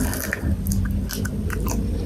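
A young woman bites into soft food close to a microphone.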